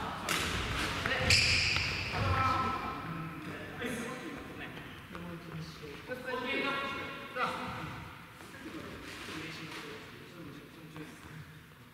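Badminton rackets smack a shuttlecock back and forth in a large echoing hall.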